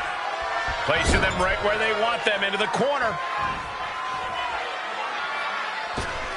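Heavy thuds of bodies hit the wrestling ring.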